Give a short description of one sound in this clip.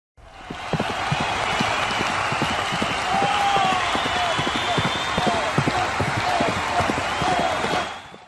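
Horses' hooves pound on turf as they gallop past.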